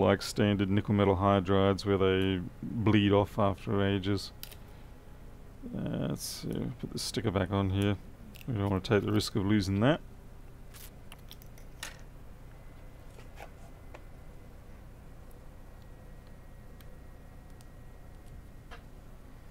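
Small plastic and metal parts click and tap as they are handled.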